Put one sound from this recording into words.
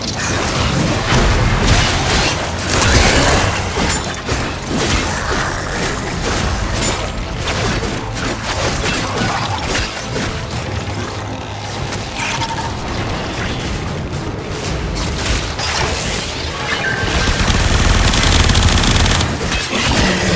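A blade swings and slashes with sharp whooshes.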